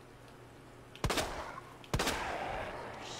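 Two loud gunshots ring out, each followed by a rolling echo.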